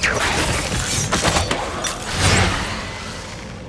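Magic spells crackle and burst in loud blasts.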